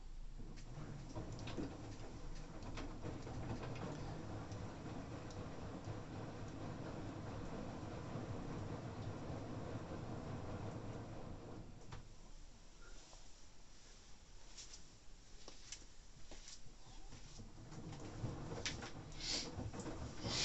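Laundry and water slosh inside a washing machine.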